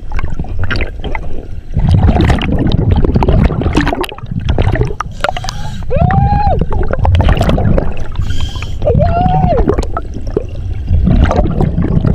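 Air bubbles from a diver's breathing gear gurgle and rumble underwater in repeated bursts.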